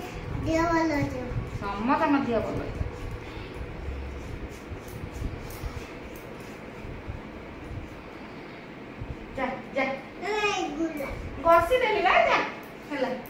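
A young woman speaks gently and playfully to a toddler close by.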